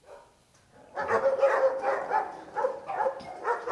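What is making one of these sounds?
Dogs bark nearby.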